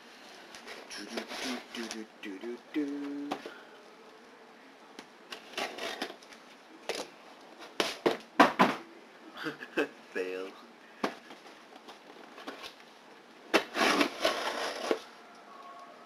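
Scissors snip through packing tape.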